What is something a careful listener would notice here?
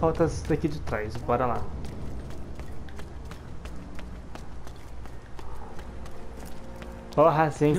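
Quick footsteps patter on hard wet ground.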